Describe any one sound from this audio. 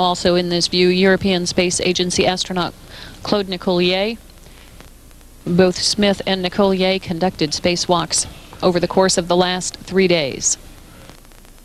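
A man speaks with animation over a radio link, heard close.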